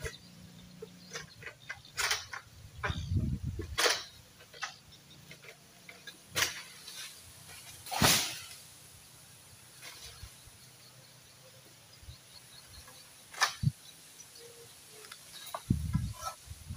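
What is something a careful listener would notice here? A long harvesting pole knocks and scrapes against a palm tree.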